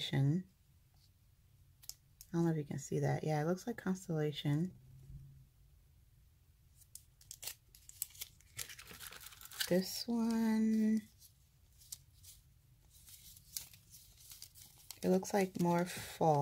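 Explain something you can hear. Thin plastic foil crinkles and rustles as it is handled.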